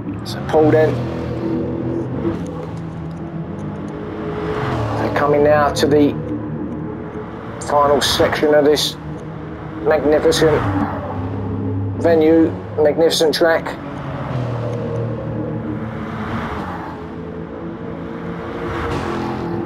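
Race cars whoosh past one after another.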